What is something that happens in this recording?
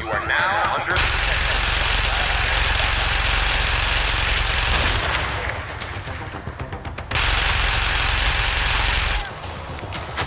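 Gunfire crackles in long rapid bursts.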